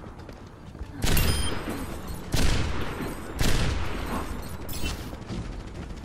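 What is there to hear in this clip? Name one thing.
Loud gunshots boom with a rumbling echo.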